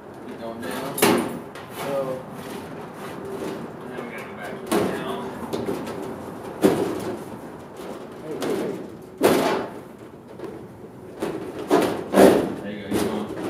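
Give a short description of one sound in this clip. A metal panel knocks and thuds against a frame.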